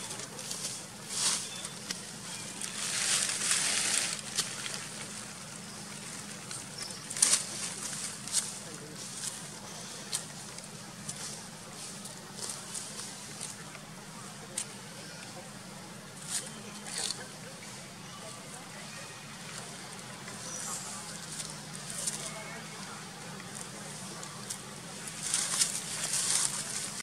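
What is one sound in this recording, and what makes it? Baby monkeys rustle and scuffle on dry leaves and grass.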